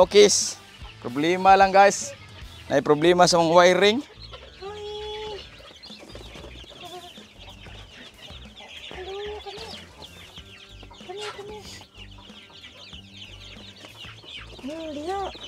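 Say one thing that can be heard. Chicks peep and cheep steadily close by.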